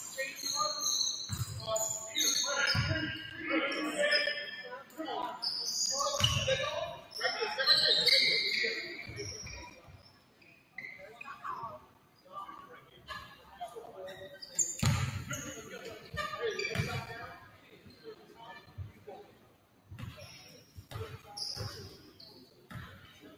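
Players and spectators shout and call out in a large echoing gym.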